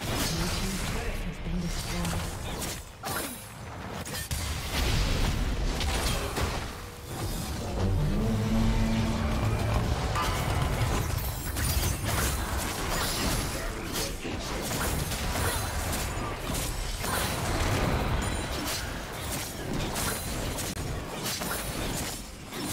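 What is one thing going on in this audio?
Spell effects whoosh and crackle as fighters clash in a video game.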